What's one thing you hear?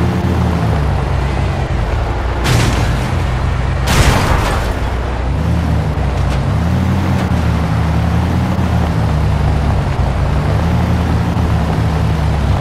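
A vehicle engine rumbles and revs steadily.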